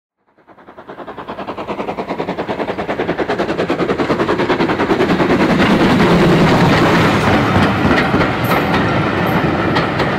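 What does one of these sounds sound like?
A steam locomotive chuffs rapidly, growing louder as it approaches.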